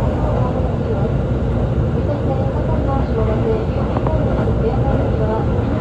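A vehicle rumbles steadily as it travels along.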